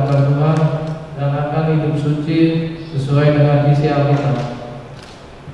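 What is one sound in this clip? A man chants slowly through a microphone.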